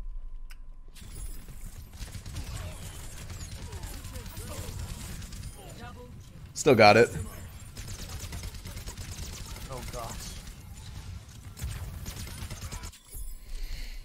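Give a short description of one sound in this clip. Gunfire and game effects crackle and hum.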